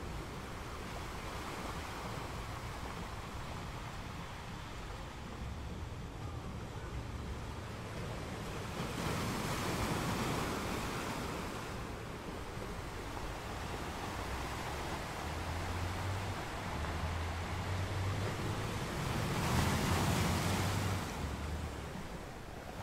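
Ocean waves crash and roar against rocks.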